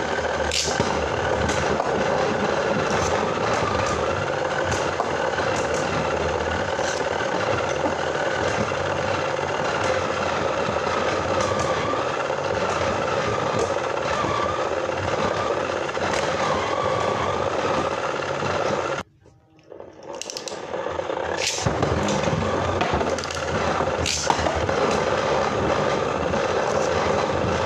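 Spinning tops whir steadily in a plastic arena.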